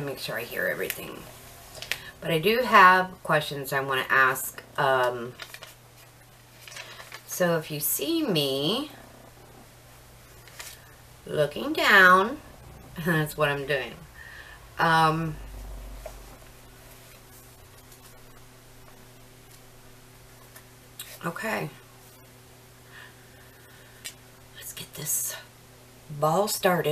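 A middle-aged woman talks calmly close to a microphone, with pauses.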